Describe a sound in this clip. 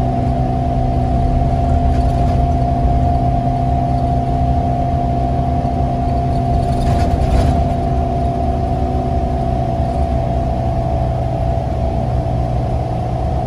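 A bus rattles and rumbles as it rolls along the road.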